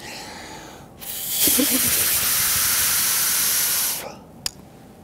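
A man blows hard through a small paper device, making a loud rushing hiss.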